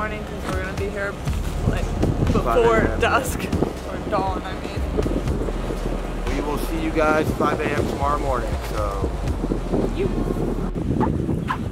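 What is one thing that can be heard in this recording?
A woman talks calmly outdoors, close by.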